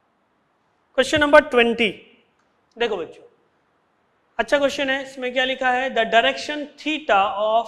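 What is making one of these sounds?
A man speaks with animation into a close microphone, as if teaching.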